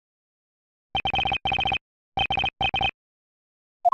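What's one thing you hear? Rapid electronic blips chatter in short bursts.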